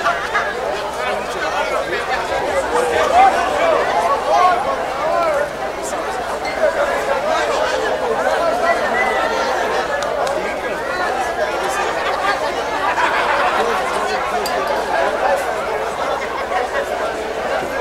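A crowd of men and women chatters outdoors all around.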